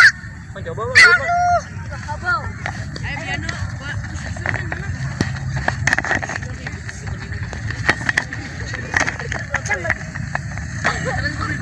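A ball thuds as it is kicked on grass.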